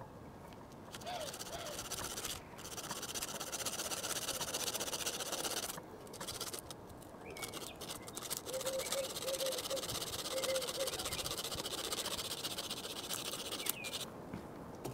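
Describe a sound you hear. A small model train whirs and rattles along a track.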